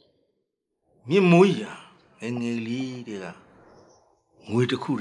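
An elderly man speaks slowly and with emotion, close to a microphone.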